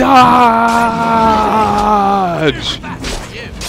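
A deep creature roar rings out and falls away.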